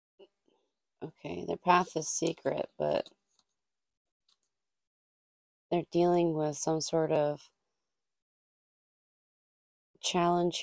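A young woman speaks calmly close to a microphone, in short bursts with pauses.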